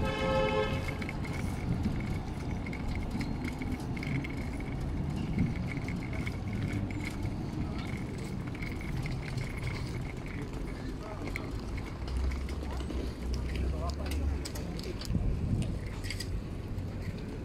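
An electric tram rolls in on rails and pulls in to a stop.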